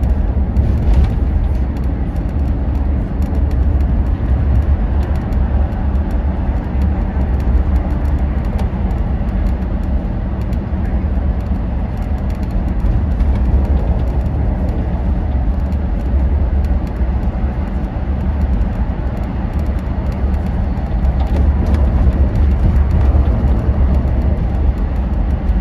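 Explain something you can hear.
A vehicle's engine rumbles low and steady.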